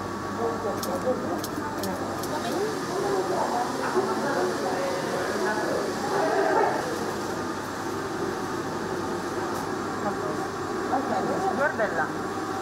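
Plastic sheeting rustles and crinkles as it is handled.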